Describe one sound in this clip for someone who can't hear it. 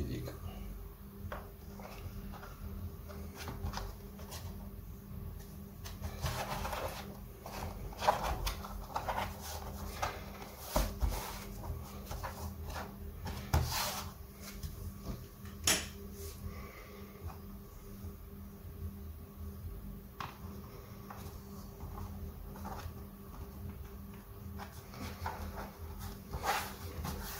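A thin tool scrapes along the edge of a plastic case.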